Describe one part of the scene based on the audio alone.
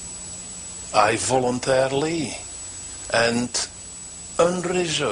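An elderly man speaks slowly and solemnly, close by.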